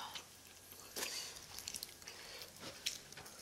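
A young woman chews food close to a microphone.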